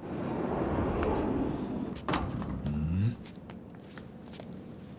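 Several men walk with heavy footsteps on a hard floor.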